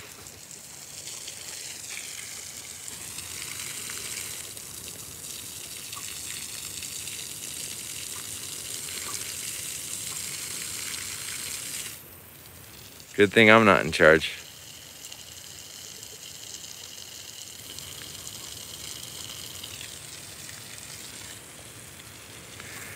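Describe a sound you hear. Water sprays from a hose and patters steadily onto dry ground outdoors.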